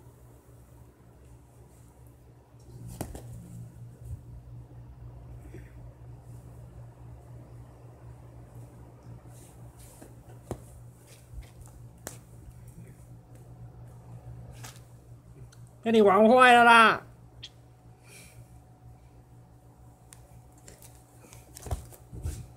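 A cat scrabbles and scratches on a woven mat.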